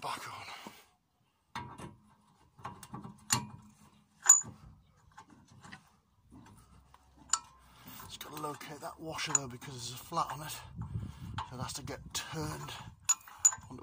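A metal brake disc clinks and scrapes against a wheel hub.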